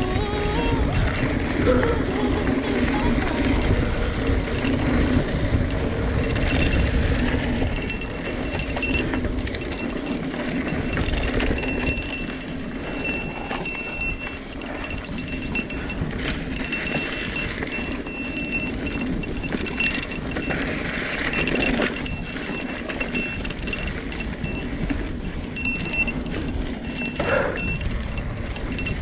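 A bicycle chain and frame rattle over bumps.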